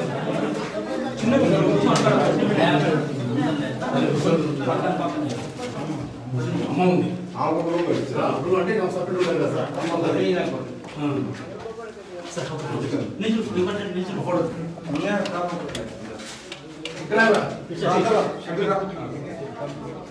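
Several men talk over one another close by, with animation.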